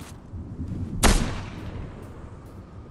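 A single gunshot rings out and echoes.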